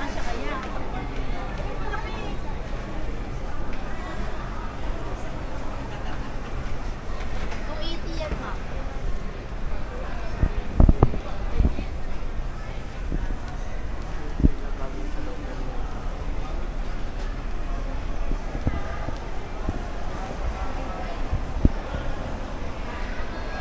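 A crowd of shoppers murmurs and chatters in a busy indoor hall.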